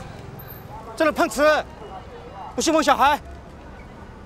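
A man speaks loudly and accusingly nearby.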